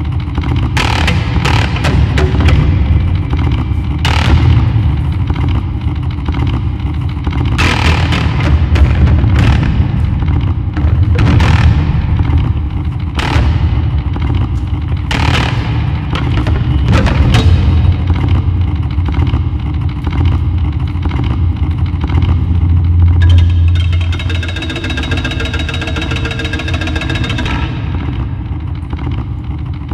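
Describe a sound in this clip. Electronic music with a deep, droning bass and sharp bursts plays through loudspeakers in a large echoing hall.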